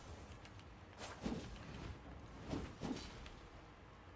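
Blades swing and strike in a fight.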